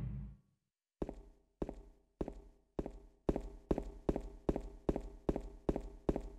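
Footsteps hurry across hard ground, getting quicker.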